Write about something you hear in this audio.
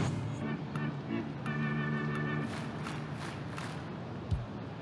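Short electronic menu tones beep.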